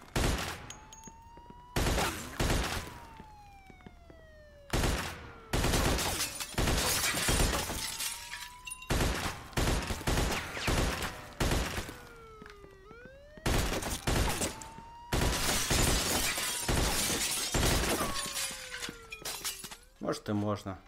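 Spent shell casings ring as they fall.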